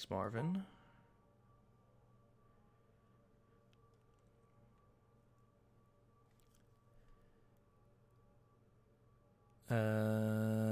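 A soft electronic hum plays.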